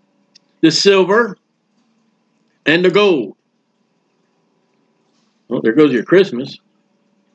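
A middle-aged man speaks calmly in short phrases, close to a microphone.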